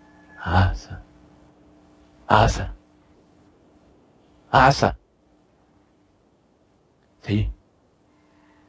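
A man shouts loudly in short bursts through an online call with a headset microphone.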